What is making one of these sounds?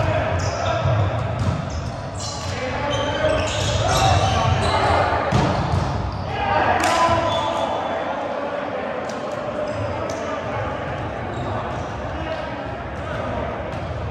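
Young men talk and call out to each other in a large echoing hall.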